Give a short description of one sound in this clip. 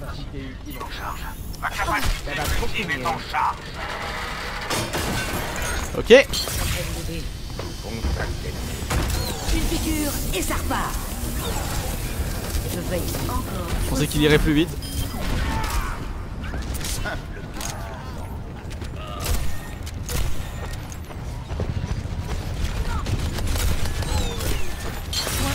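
Gunfire and energy weapons crackle and blast in a video game.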